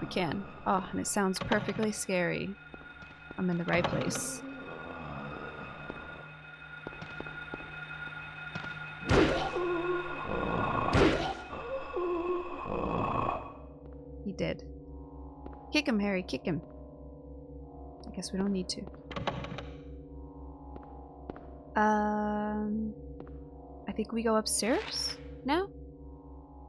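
A young woman talks calmly into a microphone.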